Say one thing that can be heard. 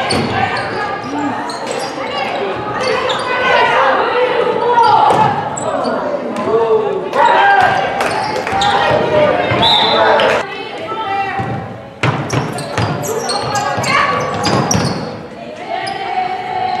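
Sneakers squeak sharply on a hard court in a large echoing hall.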